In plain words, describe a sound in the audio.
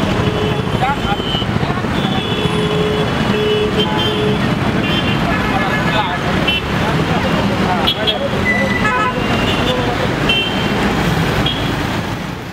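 Car horns honk now and then.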